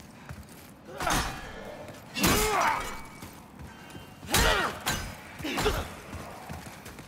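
Metal blades clash and ring loudly.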